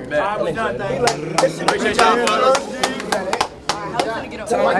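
A crowd of young men claps.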